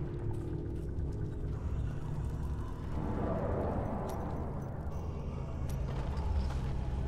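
A magic portal hums with a low, steady drone.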